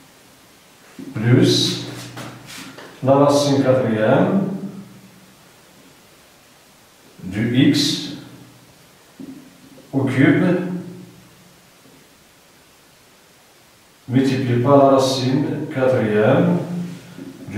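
A man speaks calmly in short bursts with pauses, close by.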